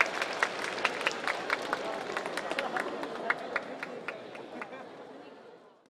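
Fireworks crackle and pop overhead, then fade away.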